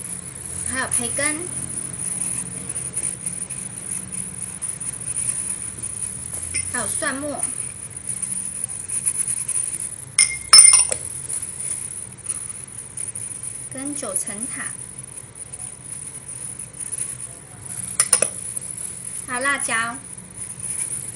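Gloved hands squish and mix soft food in a pot.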